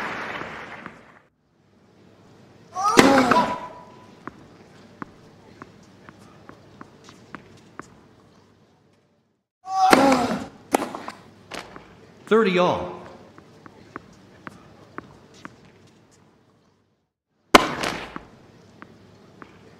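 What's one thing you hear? Rackets strike a tennis ball back and forth with sharp pops.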